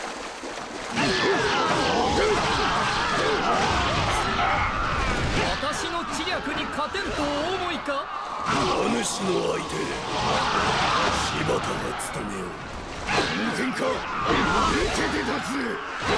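Weapons clash and strike in a loud battle.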